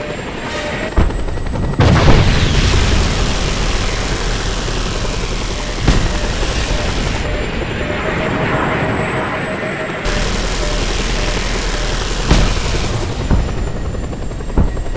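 Gunfire and explosions boom now and then.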